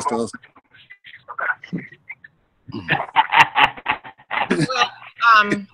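A young man laughs over an online call.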